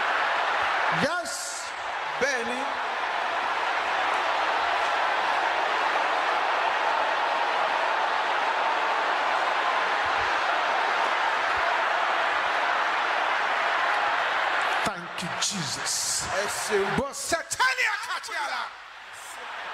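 A man preaches forcefully into a microphone.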